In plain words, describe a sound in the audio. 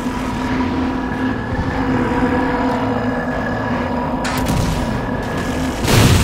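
A game aircraft engine hums steadily with a high whine.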